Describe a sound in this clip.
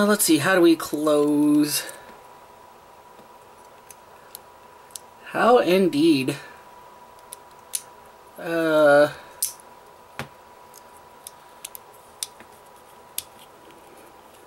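Plastic toy parts click softly as they are handled.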